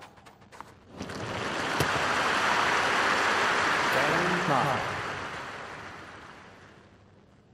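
A crowd applauds and cheers loudly, then fades away.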